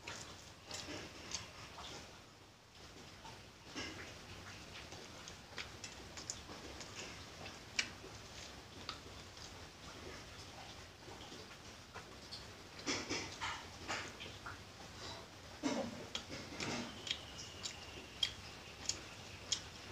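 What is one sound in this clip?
A young woman chews food noisily close by.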